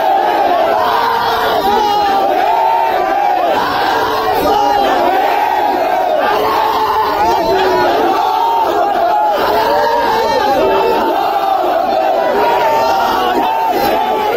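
A large outdoor crowd of men shouts and chants loudly.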